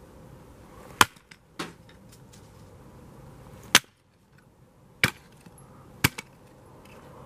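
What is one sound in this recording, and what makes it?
A hatchet chops into wood with sharp knocks.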